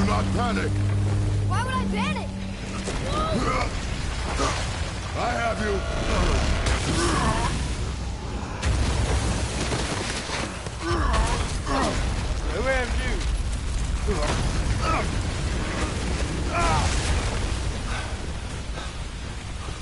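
A man grunts and yells with effort.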